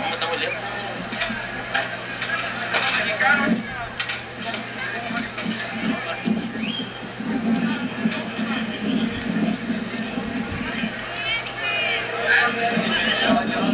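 A large outdoor crowd of men talks and shouts loudly.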